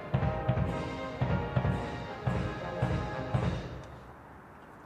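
A military band plays brass music outdoors.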